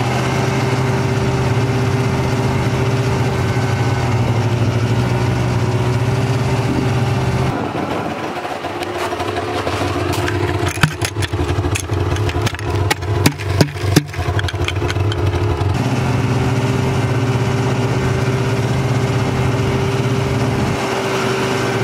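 A snowmobile engine drones steadily while riding over snow.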